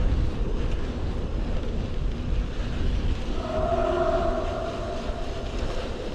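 Bicycle tyres crunch and rumble over a gravel track.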